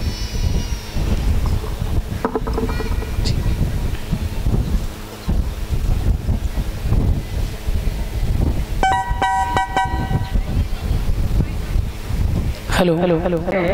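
A young woman sings into a microphone, heard through loudspeakers.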